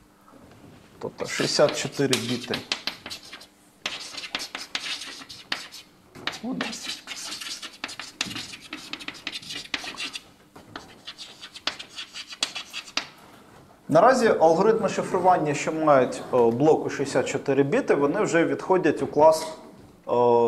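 A man lectures aloud in a room with a slight echo.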